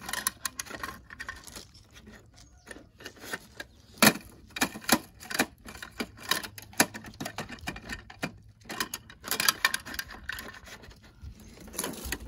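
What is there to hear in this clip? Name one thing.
A toy truck's plastic arm clicks and clatters as it lifts a small bin.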